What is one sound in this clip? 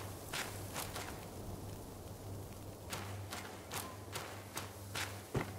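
Footsteps patter quickly on grass and earth.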